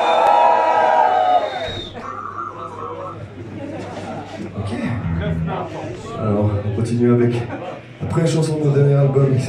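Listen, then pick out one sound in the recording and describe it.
A band plays loud live music in an echoing hall.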